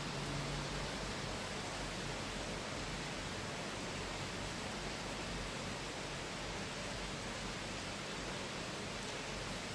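Heavy rain pours down in a steady hiss.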